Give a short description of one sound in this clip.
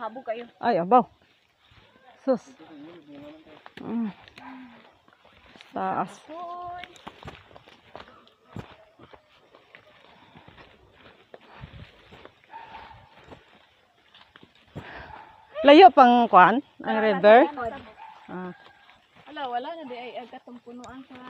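Footsteps brush through grass and crunch on a dirt path.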